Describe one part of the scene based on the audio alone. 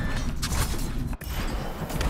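A blade swishes and slashes through the air.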